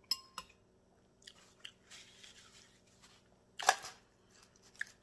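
A woman chews and slurps food close by.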